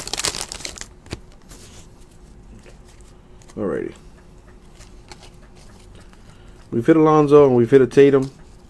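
Cards riffle and flick as they are shuffled.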